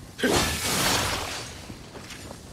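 A burst of flame roars up and then dies away.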